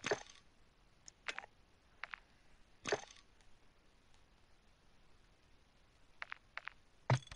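Short electronic menu clicks and swooshes sound now and then.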